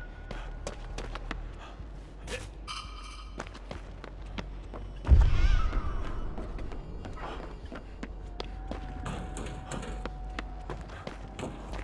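Quick footsteps run across hard floors and wooden boards.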